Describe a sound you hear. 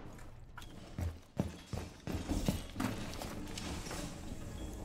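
Footsteps thud on a wooden floor.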